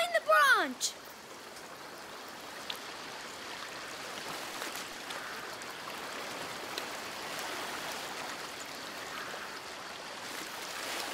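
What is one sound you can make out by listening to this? Water flows and babbles steadily over stones in a stream.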